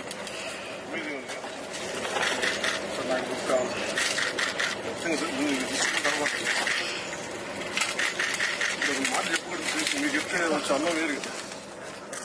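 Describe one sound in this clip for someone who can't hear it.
Men talk with one another close by.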